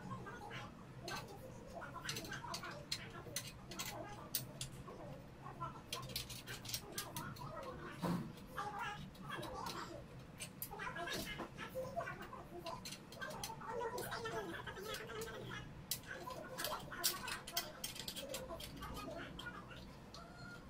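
Small metal and glass parts of a ceiling lamp clink and click.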